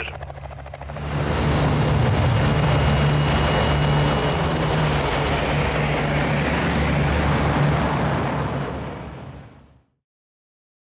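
Propeller engines of a large aircraft roar loudly and steadily, then fade out.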